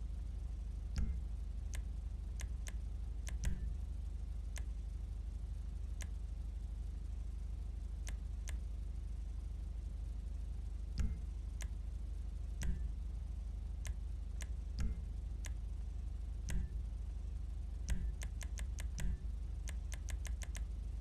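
Short menu clicks tick now and then, quickening near the end.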